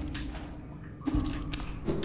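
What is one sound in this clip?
A blade slashes through the air with a quick swish.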